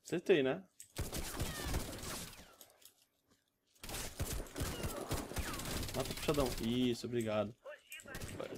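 Rifle shots crack and echo.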